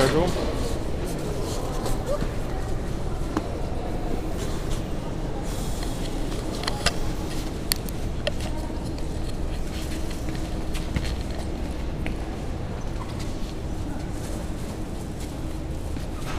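Shoes scuffle and clatter on a hard floor.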